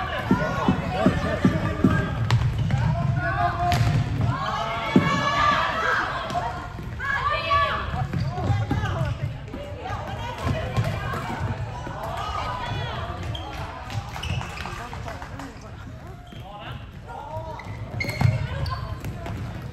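Sticks click and clatter against a ball in a large echoing hall.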